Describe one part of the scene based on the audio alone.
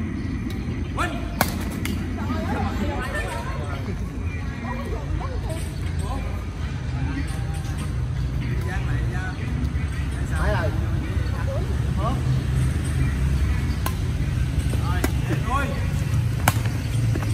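Badminton rackets strike a shuttlecock with sharp pops.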